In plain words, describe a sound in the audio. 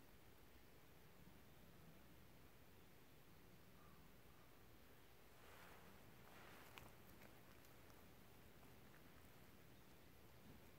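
Faint wind blows softly outdoors.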